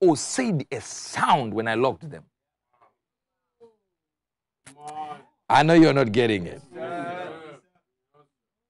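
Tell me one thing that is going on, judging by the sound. A man preaches with animation through a microphone, pausing between phrases.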